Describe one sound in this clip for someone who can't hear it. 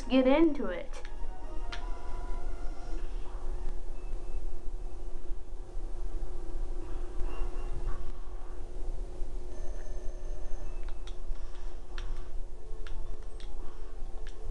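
Electronic video game music plays through a television speaker.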